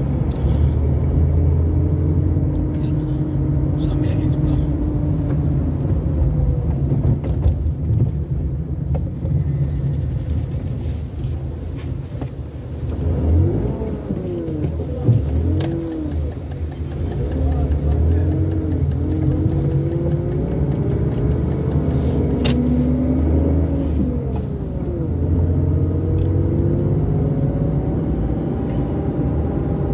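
A car engine hums low and steadily while driving.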